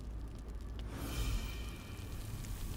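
A soft magical shimmer chimes.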